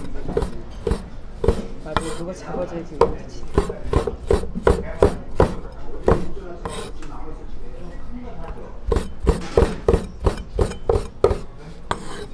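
A cleaver chops quickly on a wooden board with sharp knocks.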